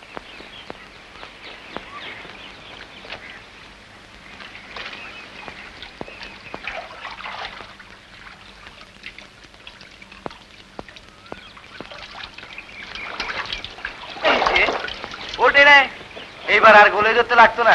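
Wooden planks knock and clatter as a man works on a boat.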